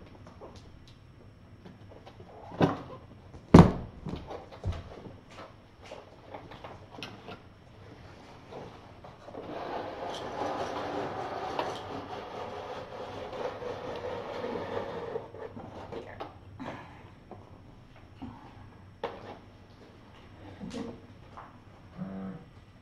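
Kittens scamper and thump about on a hard floor.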